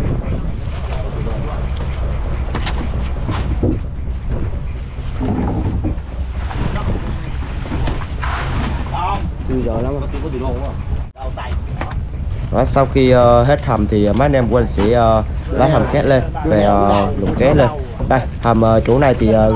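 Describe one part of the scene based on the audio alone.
Men talk loudly nearby.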